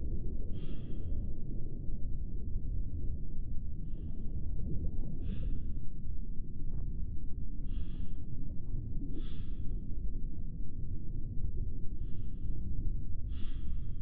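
A submarine's engine hums low and steady underwater.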